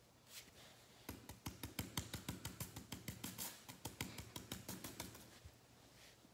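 Fingers press silicone bubbles in quick, popping taps.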